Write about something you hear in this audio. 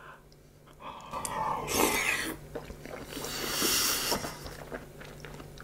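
A young man slurps and chews food close to a microphone.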